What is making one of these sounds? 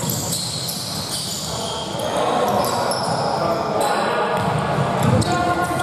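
Basketball sneakers squeak on a gym floor.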